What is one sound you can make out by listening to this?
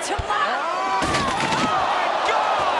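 A body crashes heavily through a table.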